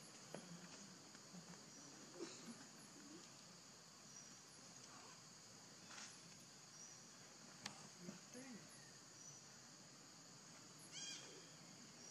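A baby monkey squeaks softly close by.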